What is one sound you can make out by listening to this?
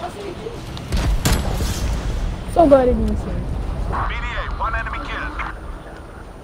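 A missile explodes with a deep rumbling boom.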